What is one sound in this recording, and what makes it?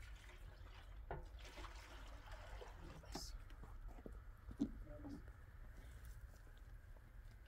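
Water sloshes and splashes in a basin as clothes are washed by hand.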